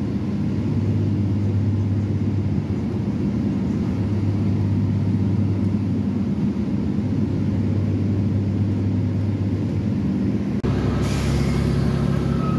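A train rumbles steadily along the tracks, with a low hum that grows louder near the end.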